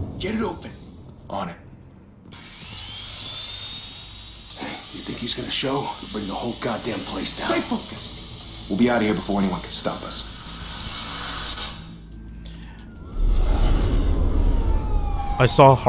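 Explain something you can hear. A young man talks close to a microphone.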